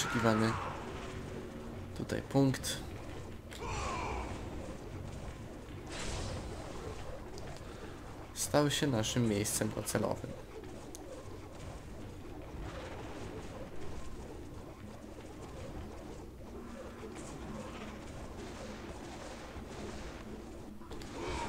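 A magic beam hums and whooshes in bursts.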